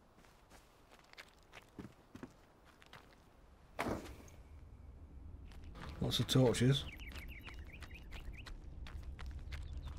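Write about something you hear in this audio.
Footsteps scuff over rocky ground.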